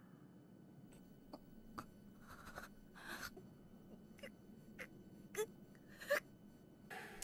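A young woman gasps and breathes weakly.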